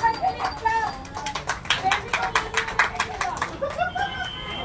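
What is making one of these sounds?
A group of people clap their hands rapidly.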